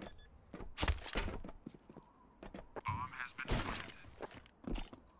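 Footsteps run on a metal walkway.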